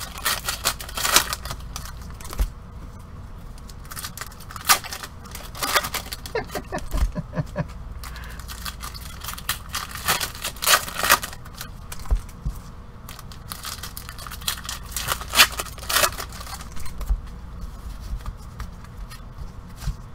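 Cardboard packs rustle and crinkle as hands handle them.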